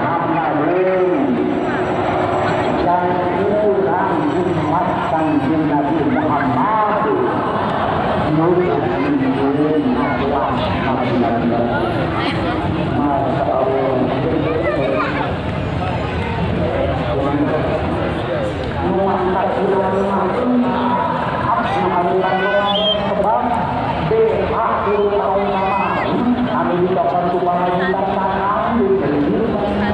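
A crowd of men and women chant together in loud, melodic voices outdoors.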